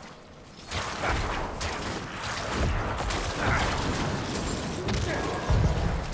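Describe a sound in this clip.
Weapons clash and magic blasts in heavy fighting.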